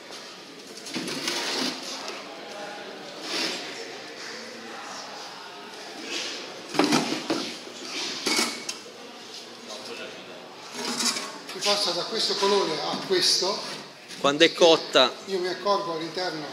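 Wooden and metal parts knock and clatter as a man handles an apparatus.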